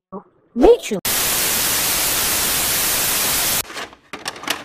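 Loud static hisses steadily.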